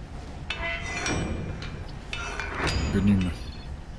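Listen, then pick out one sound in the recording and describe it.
A metal bolt scrapes as it slides open on a door.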